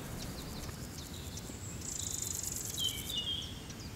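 Light footsteps patter on stone steps.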